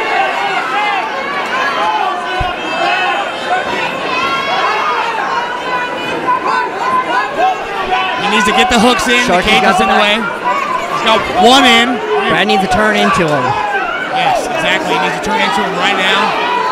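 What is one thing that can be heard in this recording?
A crowd of spectators shouts and yells encouragement, growing louder partway through.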